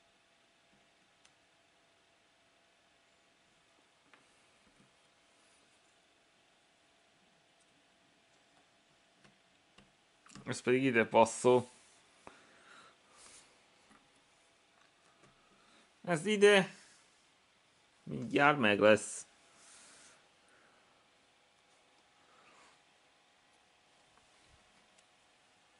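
Jigsaw puzzle pieces click softly as a hand moves them.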